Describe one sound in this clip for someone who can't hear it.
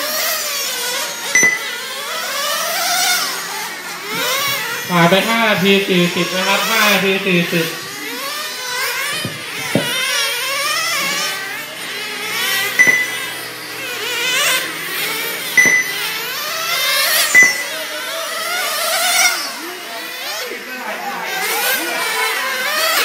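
Nitro-engined radio-controlled cars whine as they rev and race around a track.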